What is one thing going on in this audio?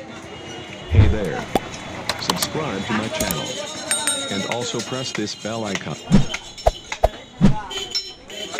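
A cleaver chops through meat onto a wooden block with heavy thuds.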